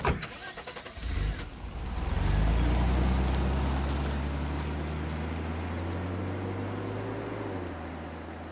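A car engine revs and rumbles as the car drives away.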